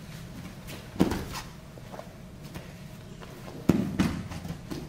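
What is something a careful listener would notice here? Bodies thump onto a padded mat.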